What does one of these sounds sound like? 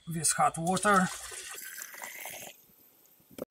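Water pours into a glass beaker.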